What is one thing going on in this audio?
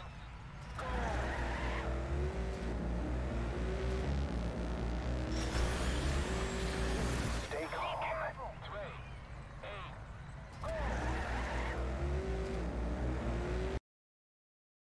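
A racing car engine roars and whines.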